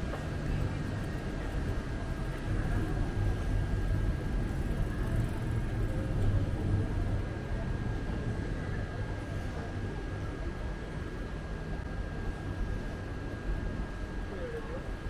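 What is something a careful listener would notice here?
A low, steady city rumble fills a quiet street outdoors.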